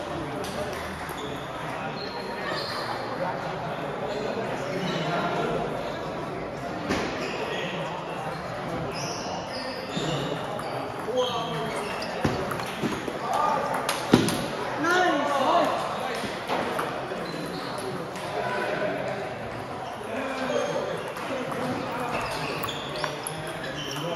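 Several men and women chatter in the background of a large echoing hall.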